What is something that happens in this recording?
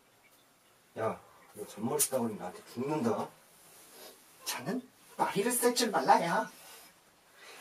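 A young man answers quietly and pleads close by.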